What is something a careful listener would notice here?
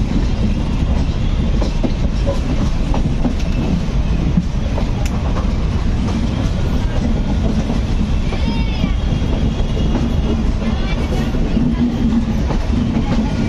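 A moving train rumbles and clatters steadily over the rails.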